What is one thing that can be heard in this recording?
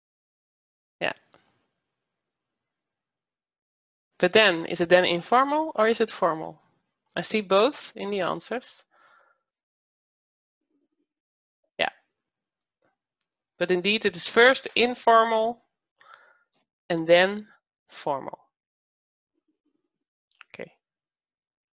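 A woman speaks calmly over an online call, with pauses.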